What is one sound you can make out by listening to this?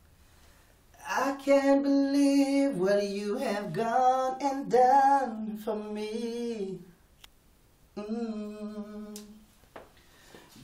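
A young man sings with feeling, close by.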